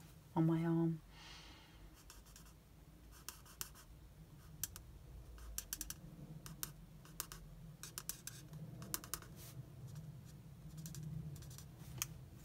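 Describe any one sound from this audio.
A marker scratches and taps softly on paper.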